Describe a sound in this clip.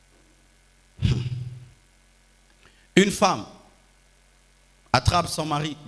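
A man preaches with animation into a microphone, in short bursts with pauses, echoing in a large hall.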